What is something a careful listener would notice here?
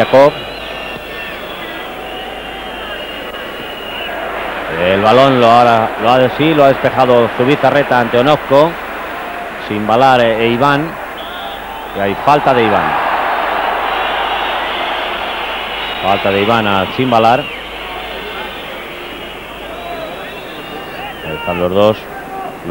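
A large stadium crowd roars, swelling and fading.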